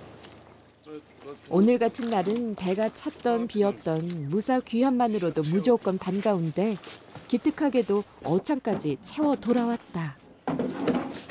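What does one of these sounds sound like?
An elderly woman talks with animation close by.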